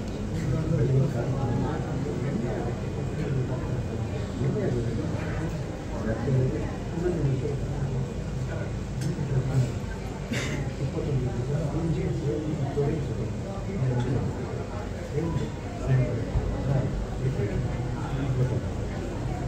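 Several men murmur and talk quietly close by.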